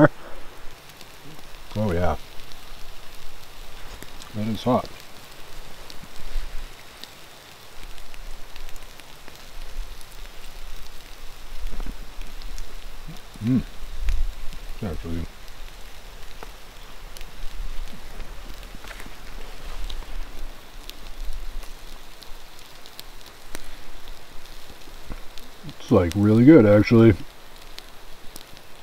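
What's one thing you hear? Charcoal embers crackle softly under food on a grill.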